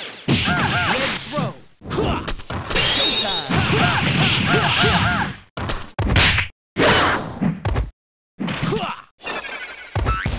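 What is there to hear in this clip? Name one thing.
Video game energy blasts whoosh and crackle loudly.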